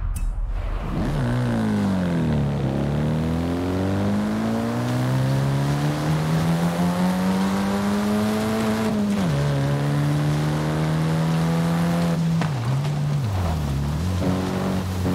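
A car engine revs up and down as gears shift.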